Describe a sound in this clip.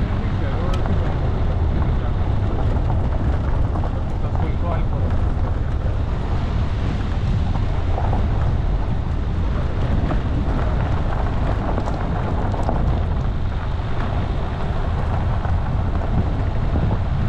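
Tyres crunch and rattle over a rough dirt track.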